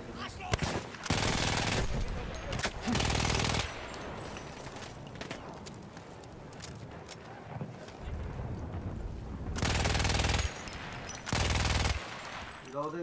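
A machine gun fires in loud, rapid bursts.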